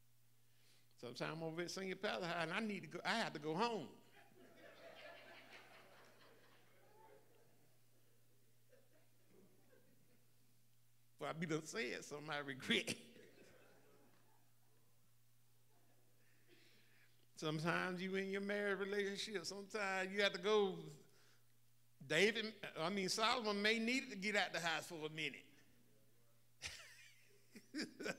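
An elderly man speaks into a microphone with long pauses.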